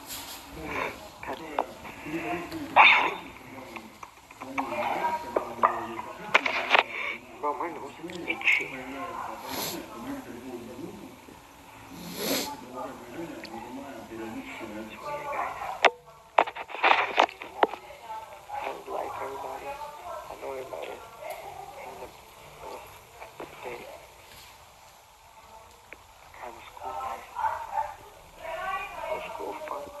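A young man talks casually and close to a phone microphone.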